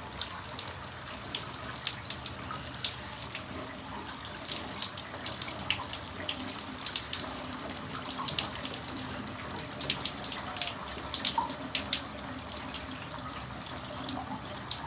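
Water from a shower splashes and patters steadily in a tiled room.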